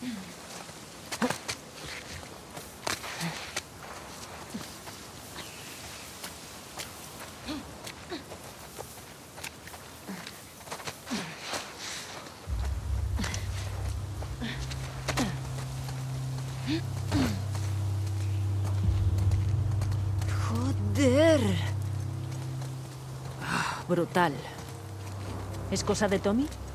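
Footsteps crunch through grass and scuff on hard ground.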